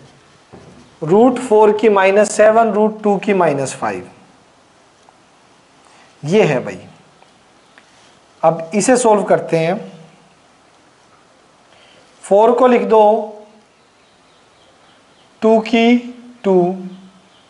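A man speaks calmly, as if explaining.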